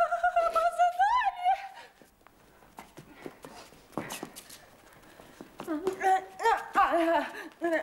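A young woman sings in a high, wavering voice.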